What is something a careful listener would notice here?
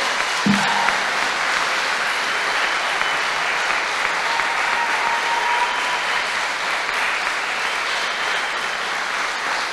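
An audience applauds and cheers loudly in a large room.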